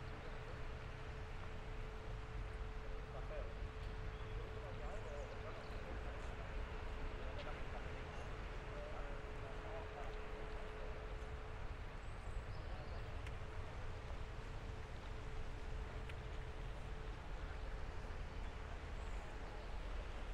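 Fountains splash in the distance.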